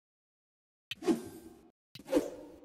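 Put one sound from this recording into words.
Coins jingle in a cheerful game chime.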